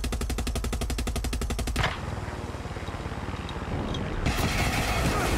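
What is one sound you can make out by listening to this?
A helicopter rotor thumps rapidly and loudly.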